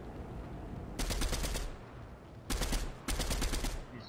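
An assault rifle fires in bursts.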